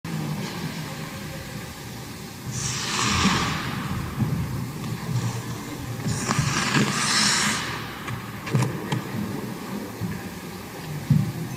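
Skate blades scrape and hiss across ice.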